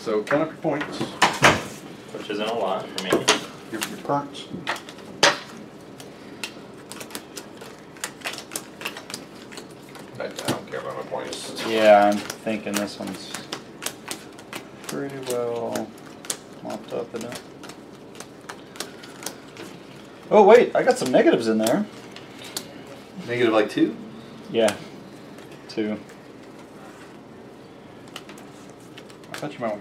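Playing cards slap and shuffle on a table.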